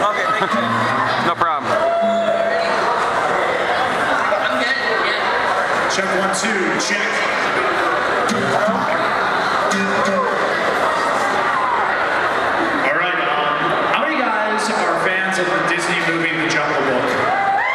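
A young woman speaks into a microphone through loudspeakers.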